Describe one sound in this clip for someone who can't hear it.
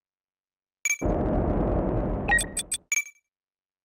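A spaceship engine roars briefly.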